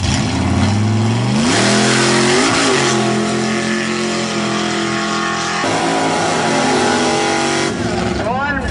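A loud race car engine roars and revs up sharply.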